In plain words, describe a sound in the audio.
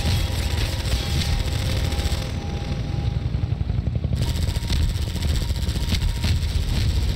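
A rocket whooshes as it flies off.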